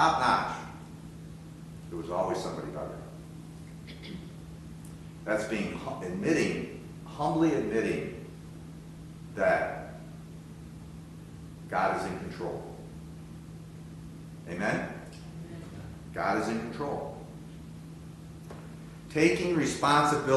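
An elderly man speaks calmly and slowly, with long pauses.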